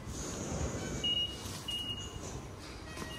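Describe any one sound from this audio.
A ticket gate beeps twice.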